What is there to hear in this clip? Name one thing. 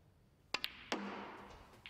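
Snooker balls knock together with a crisp clack.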